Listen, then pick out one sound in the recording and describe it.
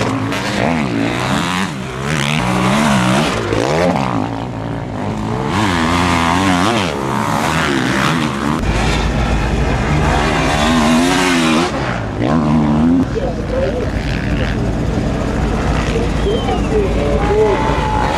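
Motorcycle engines rev loudly and whine as the bikes race past.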